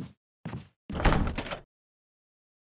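A locked door handle rattles.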